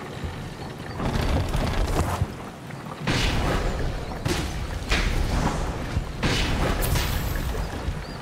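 Whooshing bursts rush past as figures leap through the air.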